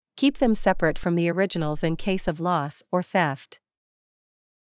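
A woman speaks calmly and clearly, as if reading out.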